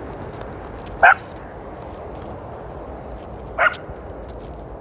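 A dog barks sharply.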